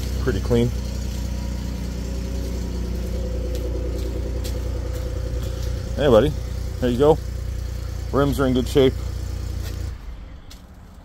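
A pickup truck engine idles with a low, steady rumble.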